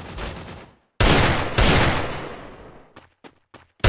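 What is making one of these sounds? Gunshots bang loudly and echo away.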